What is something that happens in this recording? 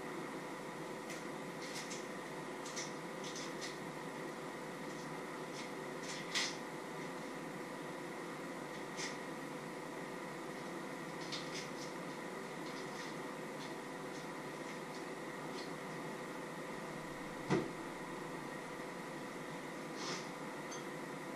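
Utensils clink and tap against dishes on a countertop.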